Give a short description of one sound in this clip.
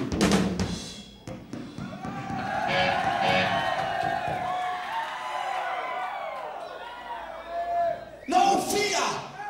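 A rock band plays loudly in a large echoing hall.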